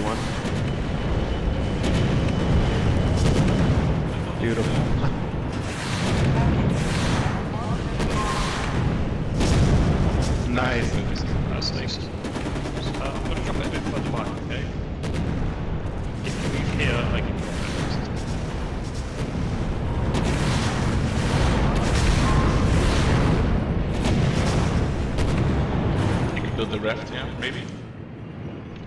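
Gunfire and explosions boom repeatedly.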